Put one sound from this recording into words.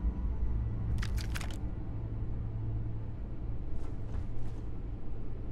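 Footsteps tap on a metal floor.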